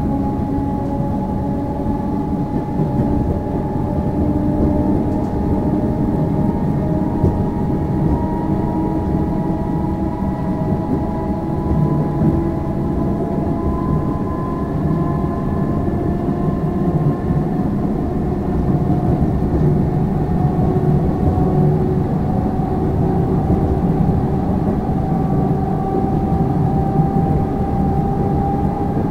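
A train rumbles steadily along the tracks, heard from inside a carriage, with a faint whine from its motors.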